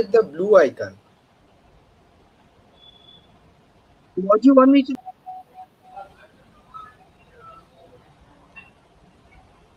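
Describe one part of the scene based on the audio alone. An older man speaks briefly through an online call.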